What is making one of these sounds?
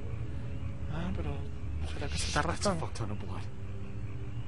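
A man speaks in a low, grumbling voice close by.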